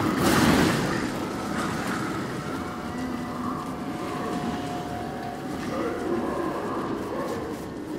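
A creature growls and snarls nearby.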